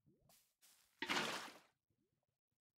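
Water splashes briefly as a bucket is emptied.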